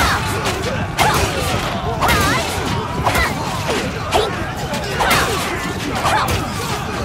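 Weapons clash and clang repeatedly in a crowded battle.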